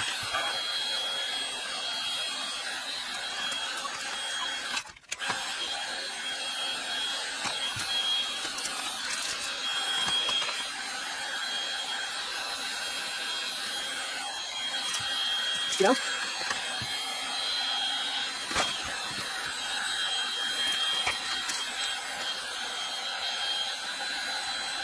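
A cordless heat gun blows with a steady, high-pitched whir.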